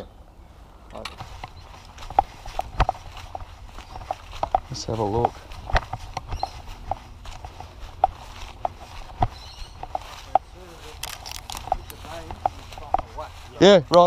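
Footsteps crunch through dry leaves and undergrowth close by.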